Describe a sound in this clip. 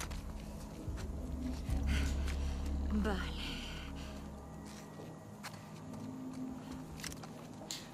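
Footsteps crunch on grass and gravel.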